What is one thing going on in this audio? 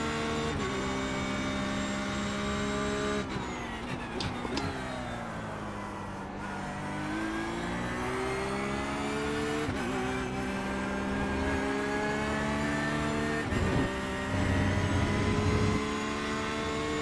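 A racing car engine roars at high revs, shifting down through the gears and then climbing again.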